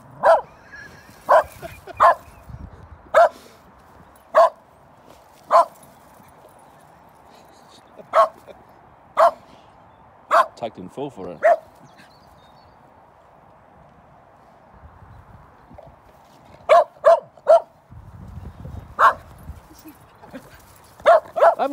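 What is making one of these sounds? A dog barks sharply, again and again, outdoors.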